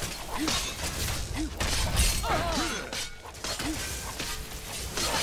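Magic spells crackle and whoosh in a fight.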